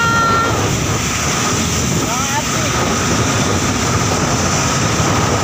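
Waves splash and crash against the hull of a boat.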